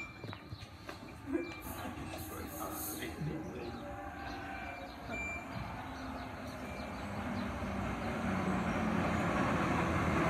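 A train approaches and rumbles louder as it pulls in alongside.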